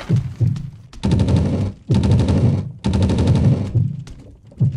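Footsteps tap quickly across a wooden floor.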